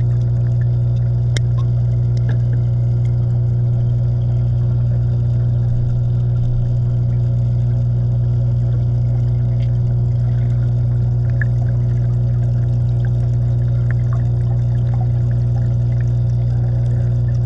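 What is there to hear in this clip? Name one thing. Air bubbles from a diver gurgle and pop underwater.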